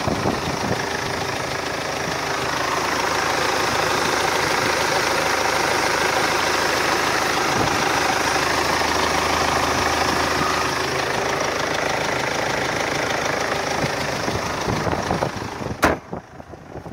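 A car engine idles close by with a steady rumble.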